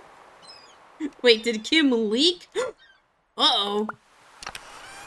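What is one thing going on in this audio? A young woman speaks and laughs close to a microphone.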